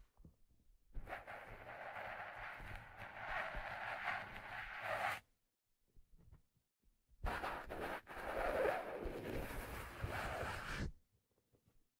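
Fingers scratch and rub along a hat's brim close to a microphone.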